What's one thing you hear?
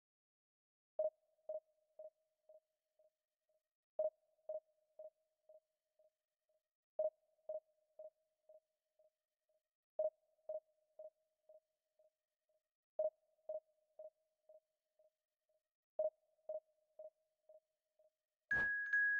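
A soft electronic beep repeats every three seconds, each time echoing away in quick fading repeats.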